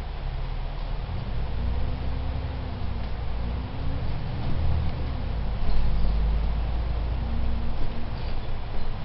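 The bus engine revs up and down as the bus pulls away.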